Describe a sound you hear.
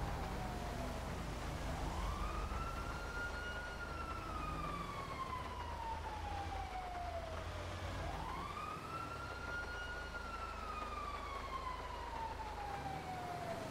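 A bus engine rumbles low as the bus drives along.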